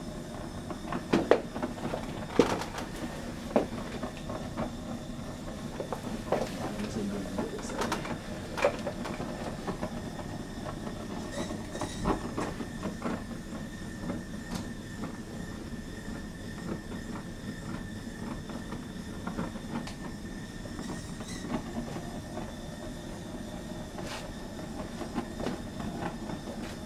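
A gas torch flame hisses and roars steadily.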